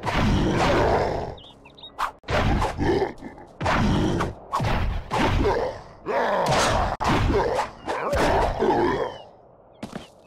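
Metal blades clash and strike repeatedly in a fight.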